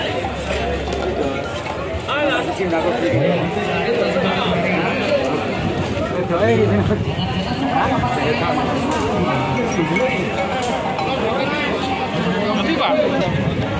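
A crowd of men talks all around outdoors.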